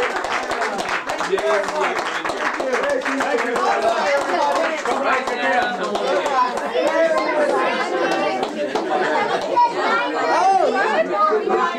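Adults clap their hands.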